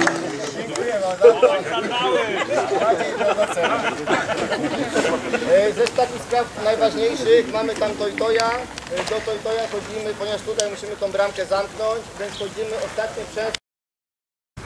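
Older men talk with animation among a small crowd outdoors.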